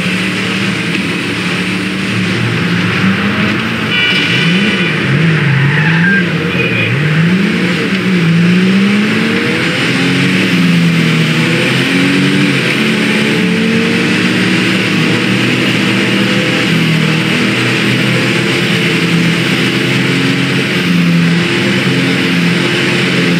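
Tyres rush over a road at speed.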